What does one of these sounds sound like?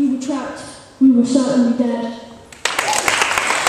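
A boy speaks into a microphone, amplified through a loudspeaker in a large echoing room.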